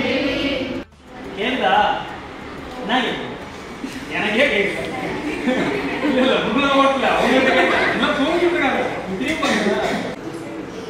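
A young woman talks with a young man nearby.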